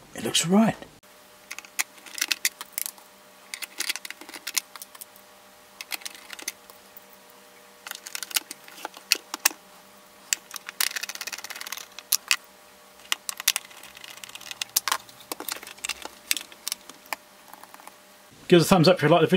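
A screwdriver clicks and scrapes against plastic screws.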